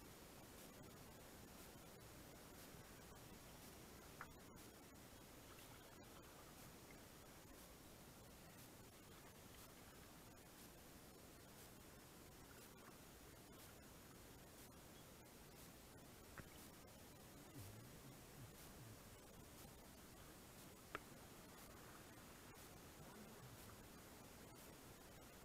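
River water rushes and ripples steadily around a kayak.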